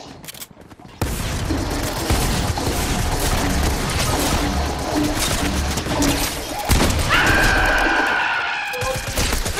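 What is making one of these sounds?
A grenade launcher fires with loud booms.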